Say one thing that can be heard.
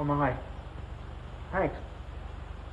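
A man speaks briefly in short bursts, close by.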